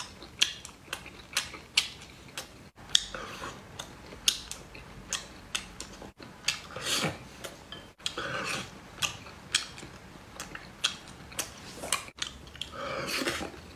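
Chopsticks click against a ceramic bowl.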